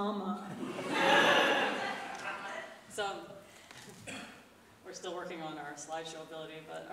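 A young woman sings into a microphone in a large echoing hall.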